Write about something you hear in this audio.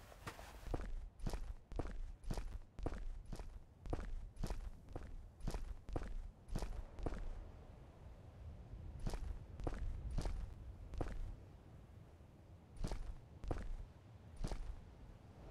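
Footsteps thud steadily on stone and sand.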